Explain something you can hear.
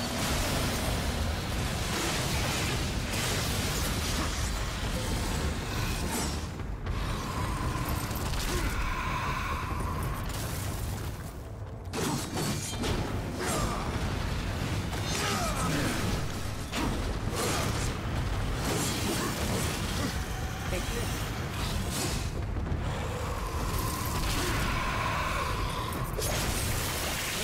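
Blades slash and clang in a fast fight.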